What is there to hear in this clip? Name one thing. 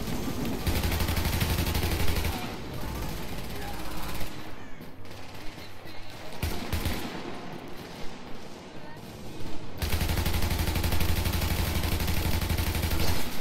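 Rapid gunfire rattles in loud bursts.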